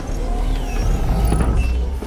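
Heavy boots thud on a hard floor.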